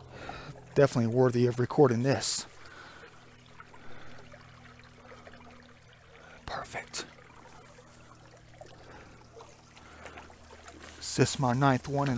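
A shallow stream trickles and gurgles over a small drop.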